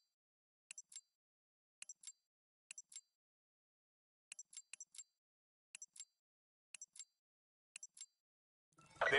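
Short electronic beeps tick in pairs during a countdown.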